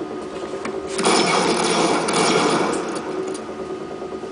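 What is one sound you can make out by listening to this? A sword whooshes and clashes in a burst of noisy impact.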